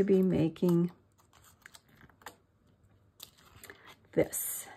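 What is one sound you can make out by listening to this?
Paper rustles and taps softly as pages are handled.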